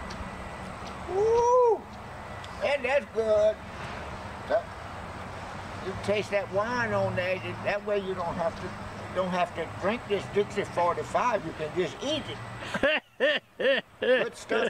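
An elderly man talks with animation outdoors, close by.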